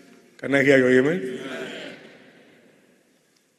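An elderly man calls out loudly, his voice echoing through a large hall.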